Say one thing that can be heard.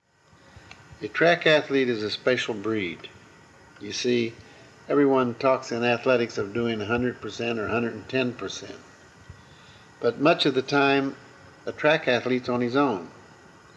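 An elderly man speaks calmly into a microphone, pausing now and then.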